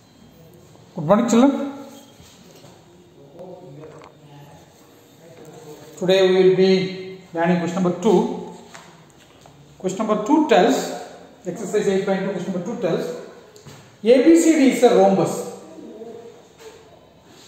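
A middle-aged man reads aloud nearby in a slightly echoing room.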